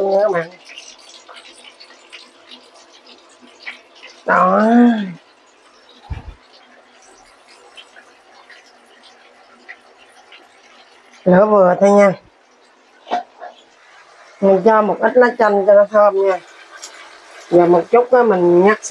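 Hot oil sizzles and crackles as fish fries in a pan.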